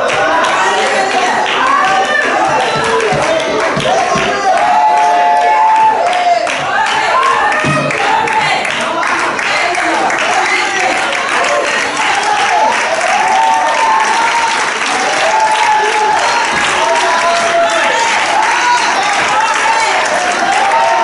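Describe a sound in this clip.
A congregation sings loudly together in a large echoing hall.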